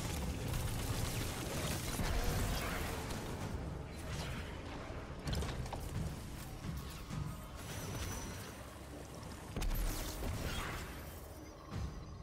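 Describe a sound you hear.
Electric crackling zaps sound from a game weapon.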